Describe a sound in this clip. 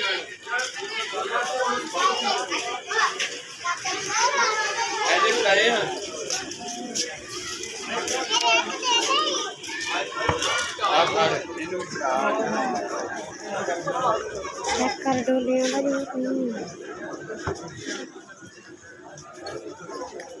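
A crowd of men talks and shouts excitedly outdoors.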